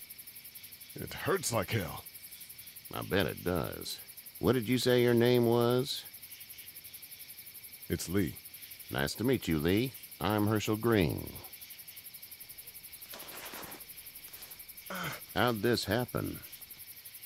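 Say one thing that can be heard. A man speaks quietly and strained, as if in pain.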